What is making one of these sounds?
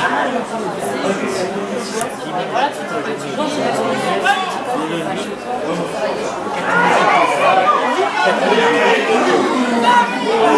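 Men shout and call to each other across an open field.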